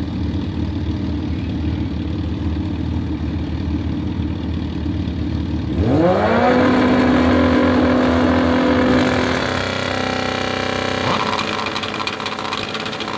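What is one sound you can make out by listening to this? A motorcycle engine idles with a low rumble.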